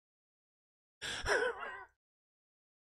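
A man laughs briefly, close to a microphone.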